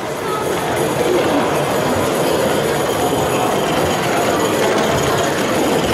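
A small model train rumbles along the tracks.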